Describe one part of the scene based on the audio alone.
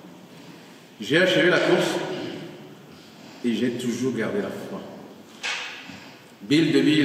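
A man sings into a microphone in an echoing room, in phrases with pauses between them.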